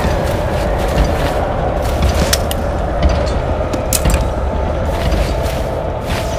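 A blade stabs into a body with sharp, wet thuds.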